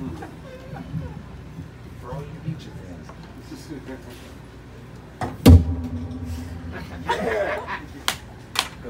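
A drummer plays a drum kit with brushes and cymbals.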